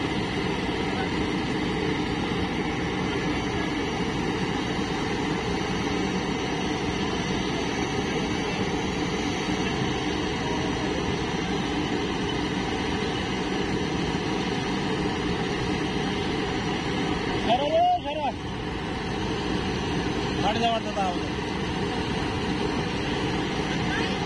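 A tractor engine idles with a steady low rumble close by.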